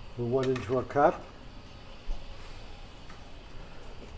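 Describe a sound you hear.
A ceramic cup clinks onto a metal tray.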